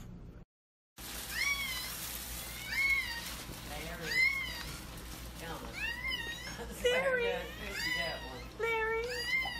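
A dog whines and yowls in short rising calls, close by.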